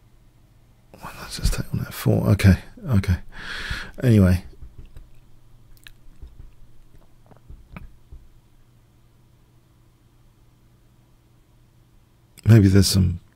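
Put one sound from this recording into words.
An older man talks with animation into a close microphone.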